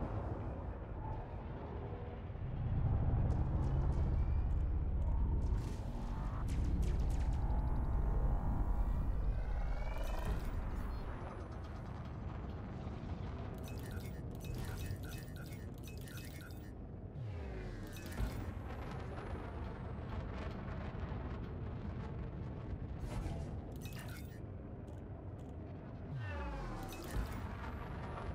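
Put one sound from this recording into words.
A spaceship engine hums steadily.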